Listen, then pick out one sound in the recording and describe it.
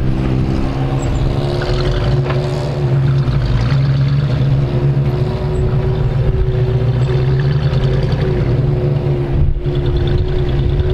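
An off-road vehicle's engine rumbles steadily as it climbs a rocky track close by.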